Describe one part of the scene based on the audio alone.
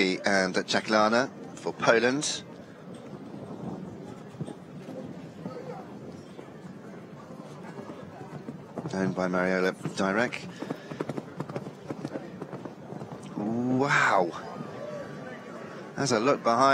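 A horse's hooves thud on soft sand as it canters and jumps.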